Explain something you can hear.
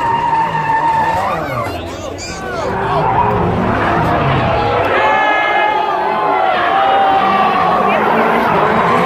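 A car engine roars and revs loudly.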